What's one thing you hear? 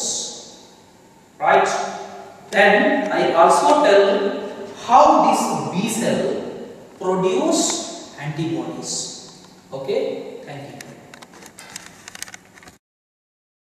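A man lectures calmly and clearly, close to a microphone.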